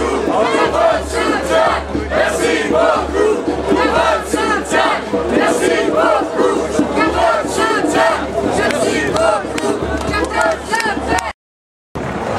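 A crowd of protesters chants loudly in rhythm outdoors.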